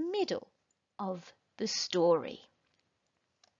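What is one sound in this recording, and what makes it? A woman reads aloud with animation, close to a microphone.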